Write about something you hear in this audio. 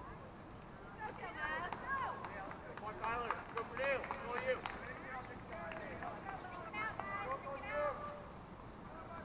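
A small crowd of spectators chats in the distance outdoors.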